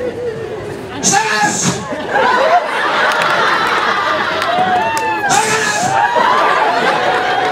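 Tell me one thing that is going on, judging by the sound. An audience laughs and cheers in a large room.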